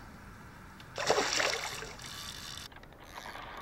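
A large fish splashes at the water's surface.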